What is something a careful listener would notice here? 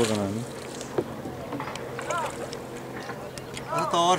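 A wooden paddle splashes and dips into the water.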